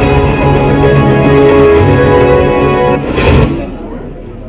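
Music plays loudly through loudspeakers, then cuts off.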